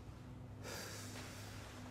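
A woman exhales a breath of smoke.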